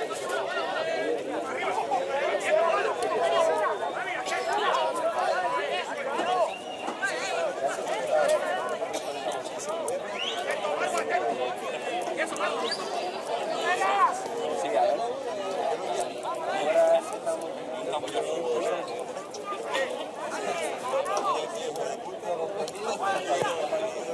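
Several men shout and call to each other across an open outdoor field.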